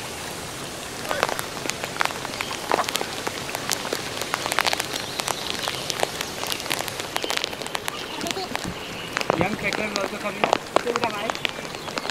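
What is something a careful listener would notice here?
Footsteps scuff and tap on wet stone.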